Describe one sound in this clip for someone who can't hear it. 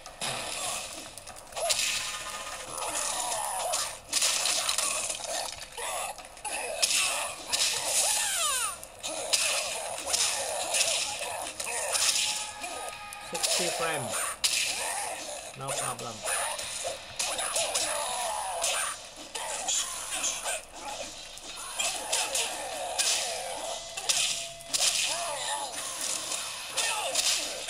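Game music plays through a small speaker.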